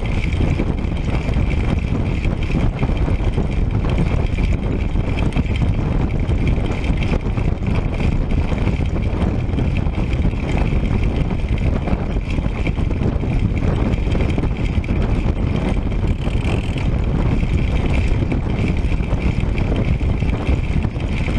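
Wind roars and buffets steadily against a fast-moving bicycle.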